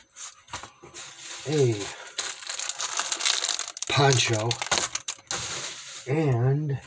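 A plastic package crinkles in a hand.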